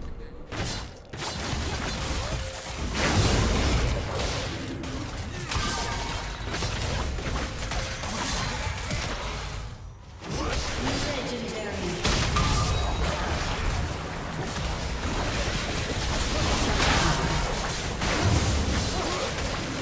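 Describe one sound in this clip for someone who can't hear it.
Magic blasts and weapon clashes from a video game battle burst out in quick succession.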